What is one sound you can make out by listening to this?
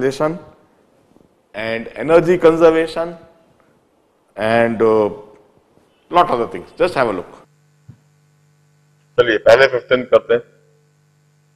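A middle-aged man lectures with animation into a close microphone, in bursts with pauses.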